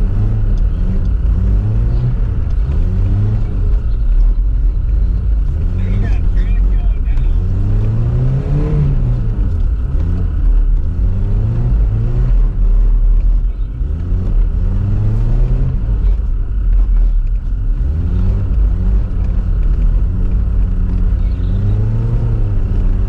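A car engine revs up and down repeatedly, close by.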